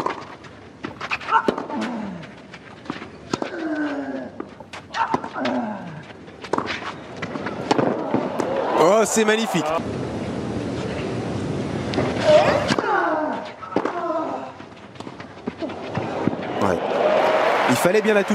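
A tennis ball is struck sharply back and forth.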